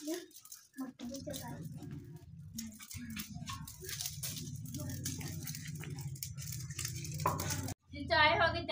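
A fire roars steadily in a small stove.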